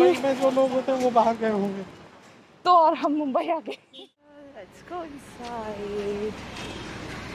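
A woman speaks with animation close by, her voice slightly muffled.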